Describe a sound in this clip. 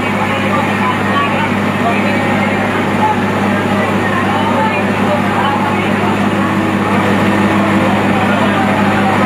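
A fire truck's pump engine hums steadily nearby.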